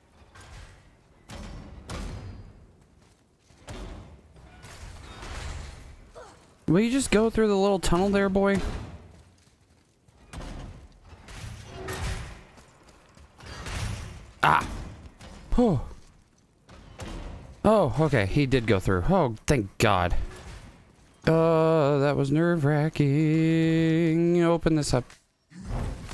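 A man talks into a microphone.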